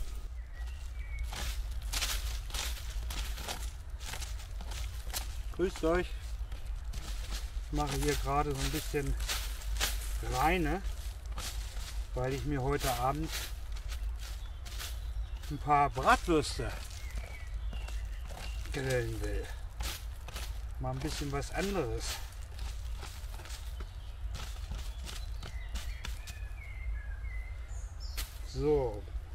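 A stick scrapes and digs into dry leaves and soil.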